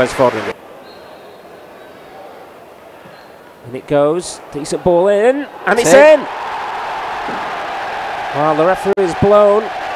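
A large crowd murmurs and roars in an open stadium.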